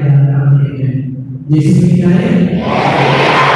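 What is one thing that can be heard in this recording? A group of boys sing together in a large echoing hall.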